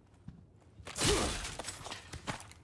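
A knife slashes through wooden boards with a sharp swish and crack.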